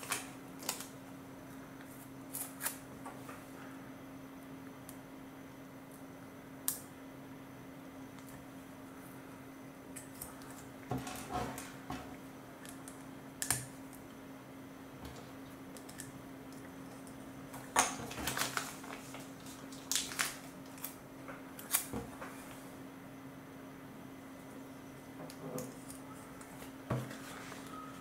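Plastic toy bricks click and snap together.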